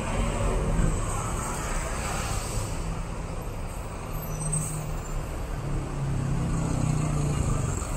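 A motorcycle engine buzzes past.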